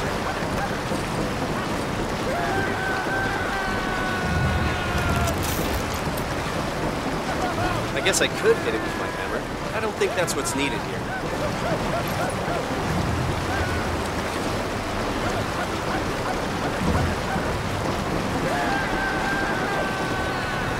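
Water gushes and splashes steadily.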